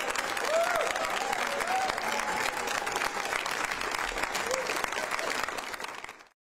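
A large crowd claps and cheers loudly in an echoing hall.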